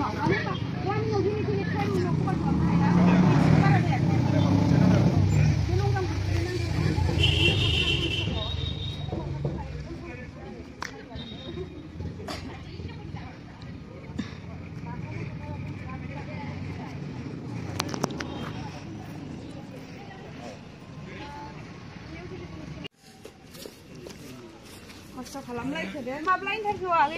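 Young people talk and call out nearby, outdoors.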